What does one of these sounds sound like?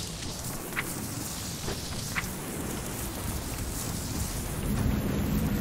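Footsteps tap on stone steps.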